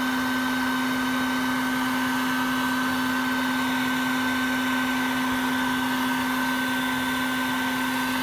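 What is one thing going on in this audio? A vacuum hose whines steadily.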